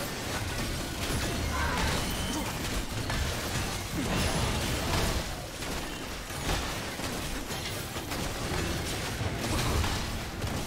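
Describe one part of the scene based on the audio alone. Spell blasts and weapon hits crackle and thump in a fast video game battle.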